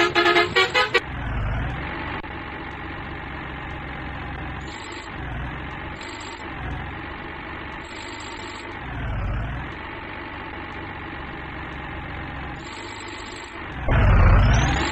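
A truck engine drones at low speed.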